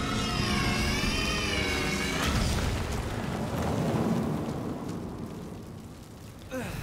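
A fiery blast whooshes and rumbles.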